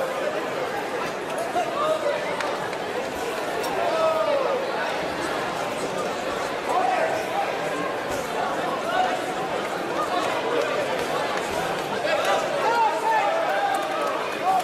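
A crowd of spectators murmurs and shouts in a large echoing hall.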